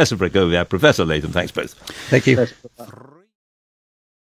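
A man speaks calmly, heard through a radio broadcast.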